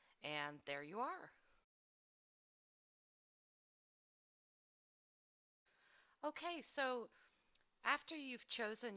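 A woman speaks with animation into a headset microphone.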